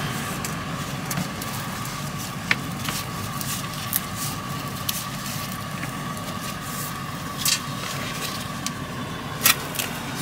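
Gloved hands rustle and crinkle a thin plastic sheet.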